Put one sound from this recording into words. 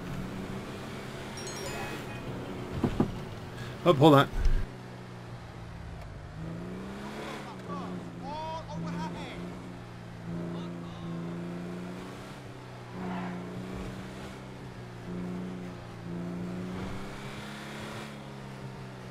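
A car engine hums steadily as a vehicle drives along a road.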